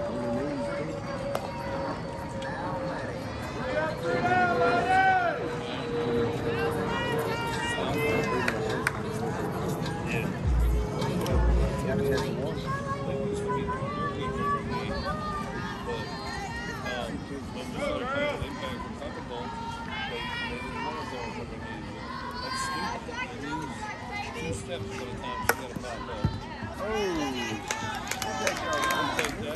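Young women and girls shout and cheer outdoors, some way off.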